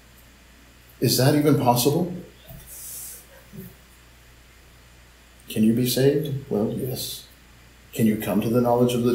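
A man reads aloud calmly over an online call.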